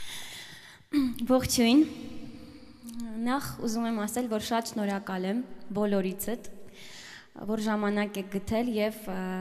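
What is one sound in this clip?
A young woman speaks into a microphone with animation.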